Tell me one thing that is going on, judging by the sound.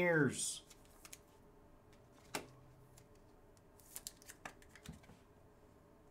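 Trading cards softly click and rustle as hands shuffle them.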